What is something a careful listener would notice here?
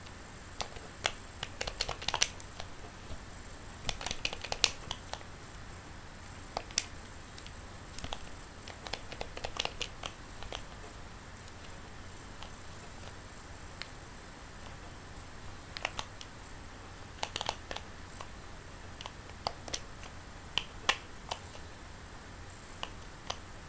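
Short game sound effects chime and pop in quick bursts as coins are collected.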